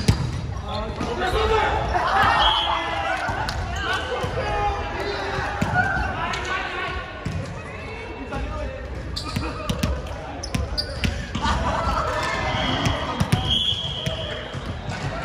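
Young men and women call out to each other loudly as they play.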